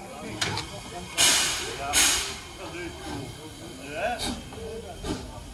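A steam locomotive hisses loudly, letting off steam.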